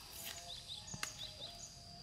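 A pineapple stalk snaps as it is broken off the plant.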